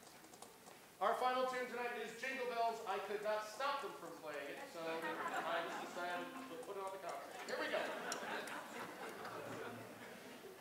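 A man speaks calmly to an audience over a loudspeaker.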